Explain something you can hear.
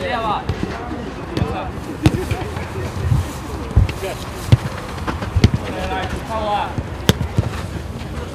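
Men shout to each other outdoors.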